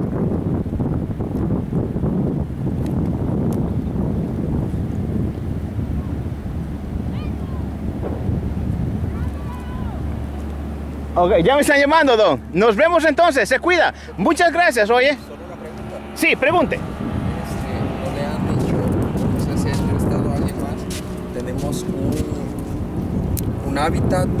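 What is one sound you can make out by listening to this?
Wind blows steadily outdoors, rumbling across the microphone.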